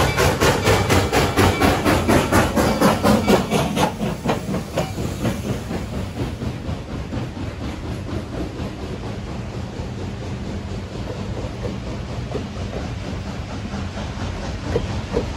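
Railway carriages rumble and clatter over the rails.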